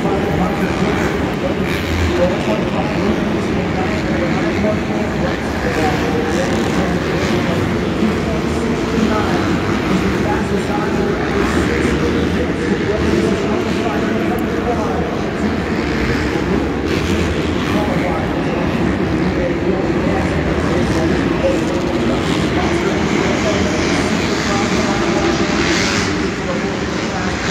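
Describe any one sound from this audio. Dirt bike engines rev and whine around an echoing stadium.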